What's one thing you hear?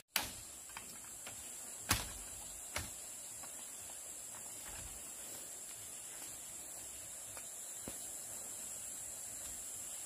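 Bamboo panels clatter and knock as they are lifted and moved.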